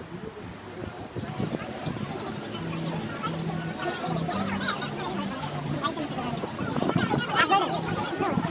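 A crowd of young men and women chatters, growing louder.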